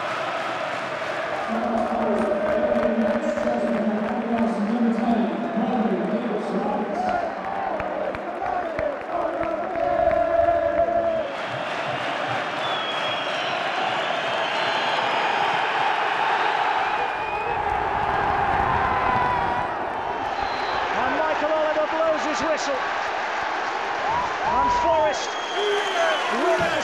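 A large stadium crowd sings loudly together.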